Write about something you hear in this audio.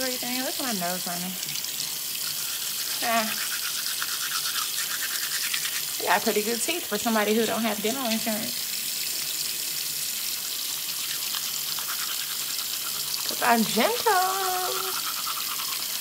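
A young woman speaks close by with exaggerated expression.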